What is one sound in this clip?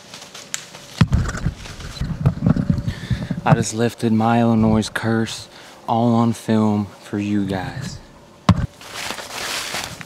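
Clothing rustles and brushes against the microphone.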